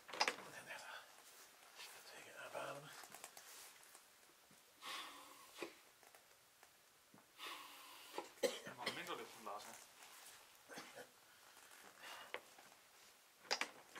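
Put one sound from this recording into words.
Plastic and fabric rustle as a man handles a bag on the floor.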